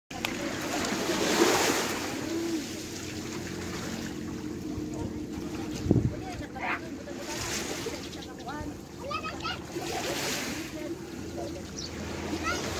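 Water laps and splashes close by.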